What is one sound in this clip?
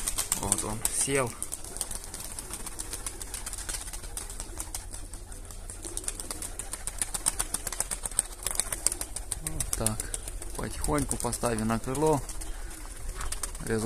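Pigeons flap their wings as they take off and fly.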